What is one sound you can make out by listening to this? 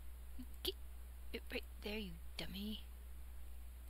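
A woman speaks briefly and calmly, close to a microphone.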